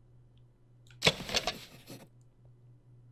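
A short chiming sound effect rings out.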